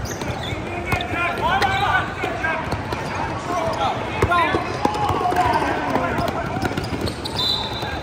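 Young players shout and call out to each other.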